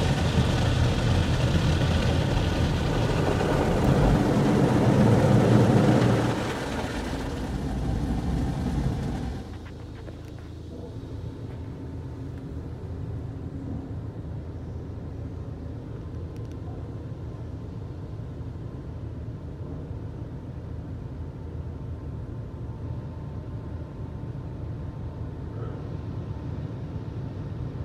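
A car wash machine hums steadily.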